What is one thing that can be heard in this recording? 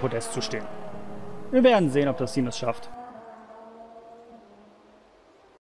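A racing car engine whines at high speed and slowly fades.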